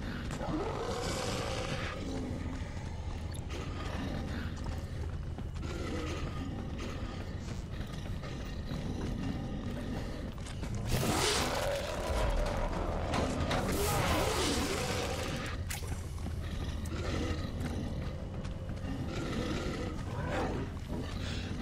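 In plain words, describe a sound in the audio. Monsters growl and snarl nearby.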